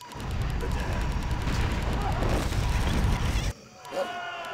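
Game weapons clash and magic effects crackle in a noisy battle.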